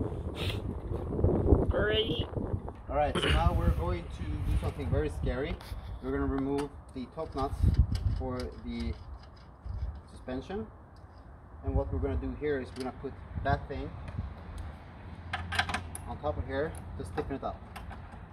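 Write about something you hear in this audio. A young man talks casually and close by.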